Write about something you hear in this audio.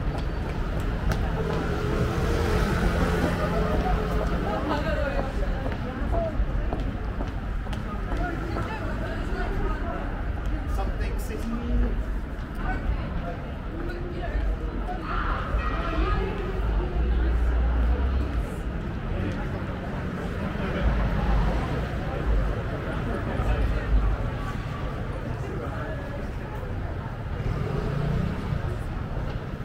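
Traffic hums steadily in a city street at night.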